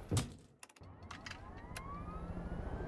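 Switches click sharply a few times.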